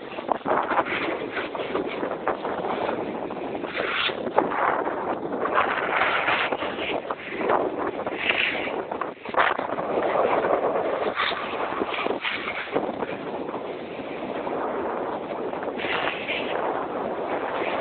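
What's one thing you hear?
Snowboards scrape and hiss over packed snow.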